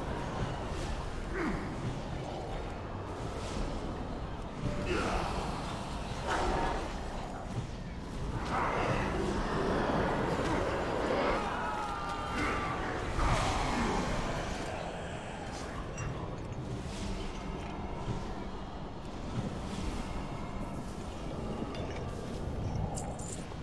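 Spell effects whoosh and crackle in a fast, busy game battle.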